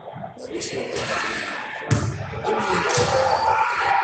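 A basketball clanks off the hoop's rim.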